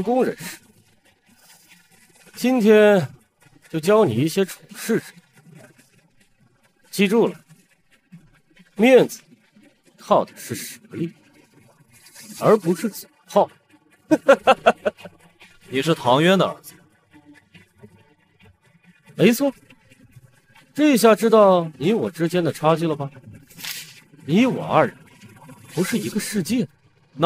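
A man speaks with animation close by, laughing at times.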